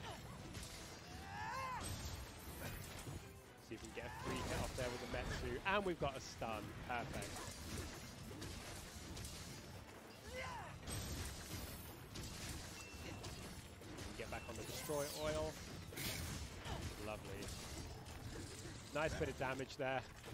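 A sword slashes and strikes with sharp clangs.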